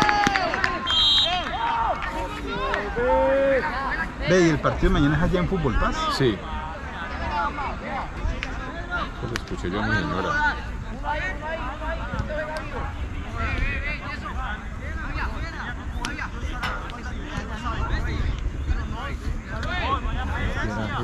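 Young players shout and call out to each other in the distance.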